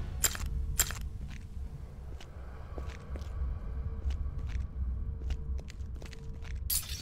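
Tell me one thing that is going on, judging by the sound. Footsteps tap lightly on stone.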